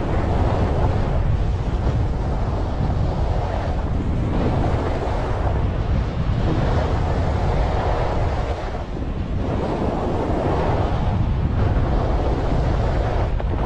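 Skis scrape and hiss over packed snow in swelling turns.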